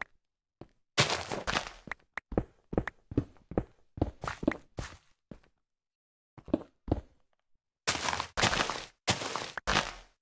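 Loose gravel and dirt crumble and rustle down in short bursts.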